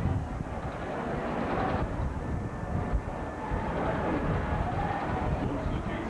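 A roller coaster train rumbles along its track.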